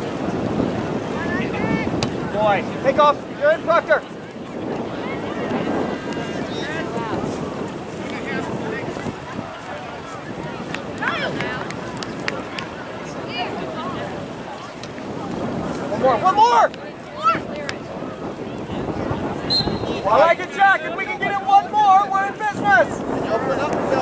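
Spectators, men and women, shout and cheer outdoors from the sideline.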